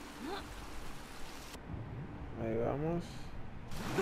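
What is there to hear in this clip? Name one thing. A person splashes into water.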